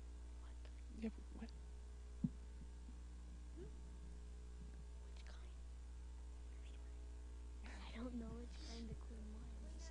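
A young boy speaks softly through a microphone.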